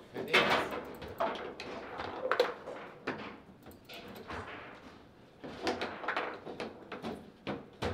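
A foosball ball knocks sharply against the rods and walls of a table.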